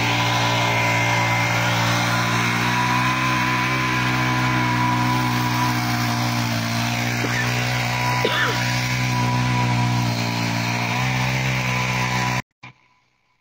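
A small petrol engine runs steadily with a loud drone.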